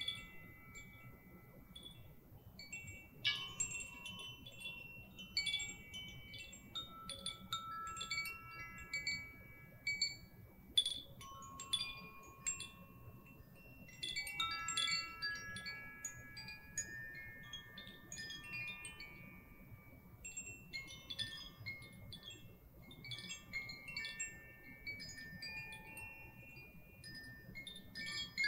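Small hand-held chimes tinkle and ring with bright, overlapping tones that linger.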